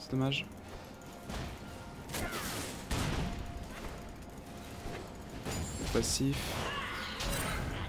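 Magic blasts and weapon hits clash in a busy fight.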